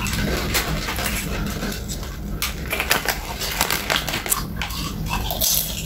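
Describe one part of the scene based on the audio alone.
A plastic snack bag crinkles.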